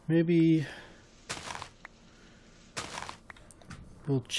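Dirt crunches in short bursts as it is dug.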